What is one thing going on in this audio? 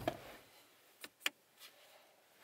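A button clicks under a finger.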